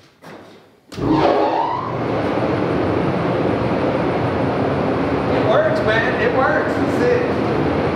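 Ventilation fans start up with a sudden steady roar.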